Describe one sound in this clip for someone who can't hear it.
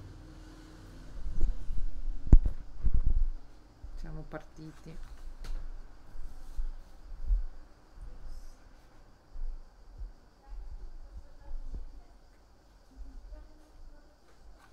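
A middle-aged woman reads aloud calmly, close to a microphone.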